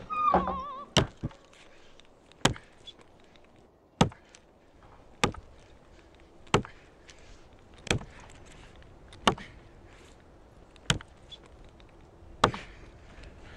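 An axe chops into a wooden post with sharp, regular thuds.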